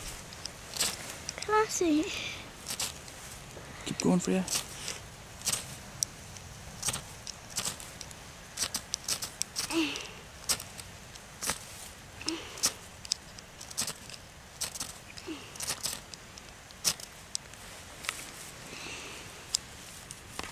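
Dry grass rustles and crackles close by.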